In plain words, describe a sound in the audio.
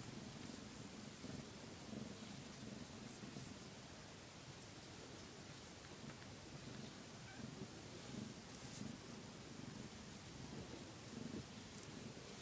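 A cat purrs loudly and steadily up close.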